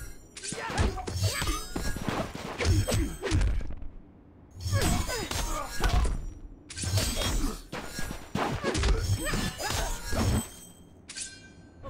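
A magic staff crackles and whooshes through the air.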